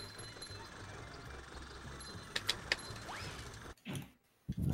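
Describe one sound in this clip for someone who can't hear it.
Soft video game music plays.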